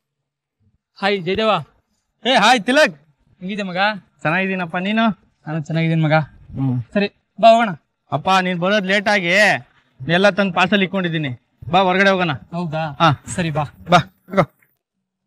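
Two young men talk with each other close by.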